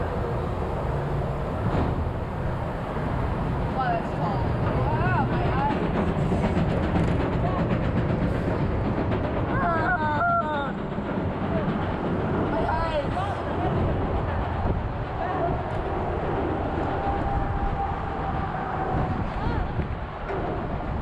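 A roller coaster car rattles and clanks steadily as it climbs a lift hill.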